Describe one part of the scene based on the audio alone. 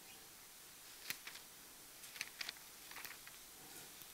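A middle-aged woman reads aloud quietly into a microphone.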